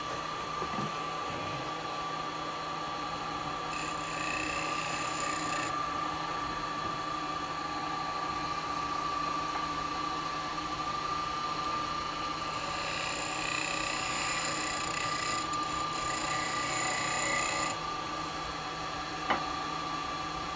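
A wood lathe hums steadily.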